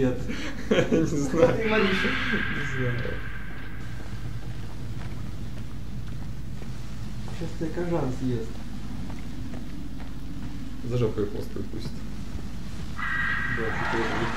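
Footsteps crunch slowly on the ground.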